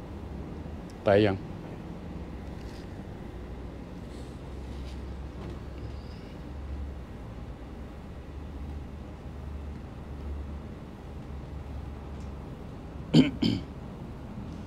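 An elderly man speaks a few short words close by.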